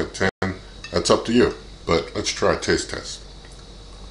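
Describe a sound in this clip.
A man speaks calmly, close to the microphone.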